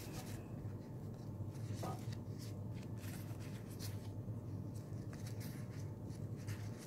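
Paper rustles and crinkles as hands fold and fluff it.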